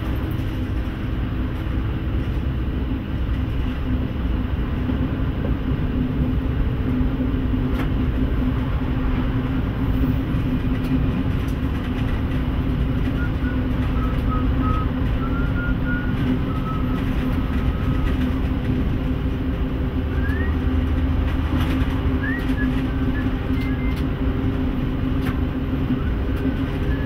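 A train engine rumbles steadily.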